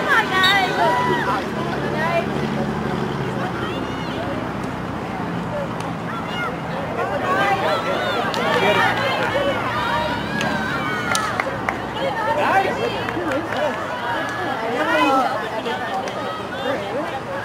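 Young women shout and call out to each other across an outdoor field.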